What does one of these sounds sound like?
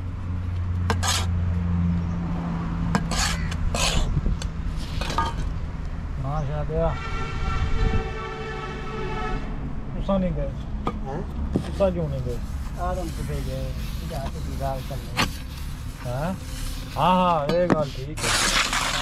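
A metal trowel scrapes and taps on damp sand.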